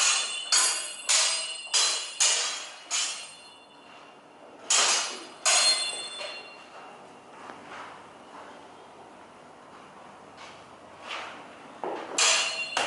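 Steel longswords clash and ring.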